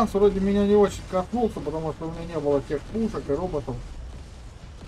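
A man talks animatedly into a microphone.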